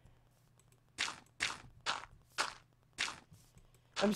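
Dirt crunches in short bursts as blocks are dug.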